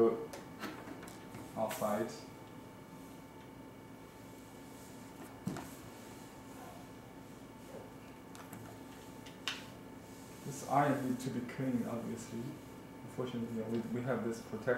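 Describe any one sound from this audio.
An iron slides over paper.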